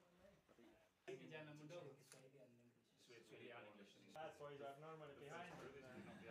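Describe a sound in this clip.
Men talk and laugh together in a small room.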